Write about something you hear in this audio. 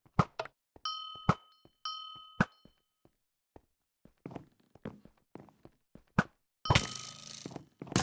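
A bow shot lands with a high ringing chime.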